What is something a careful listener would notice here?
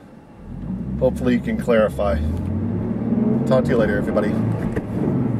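A middle-aged man talks casually inside a car.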